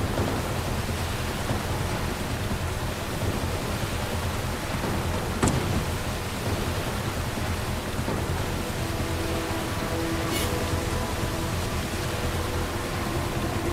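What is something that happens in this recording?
Water splashes and sprays around a speeding jet ski.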